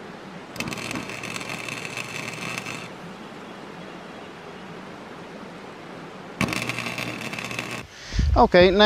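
A power tool grinds metal with a high, steady whine.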